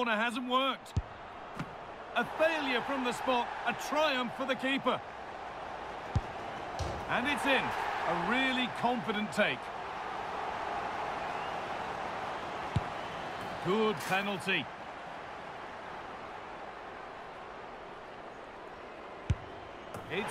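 A football is struck with a short, dull thud.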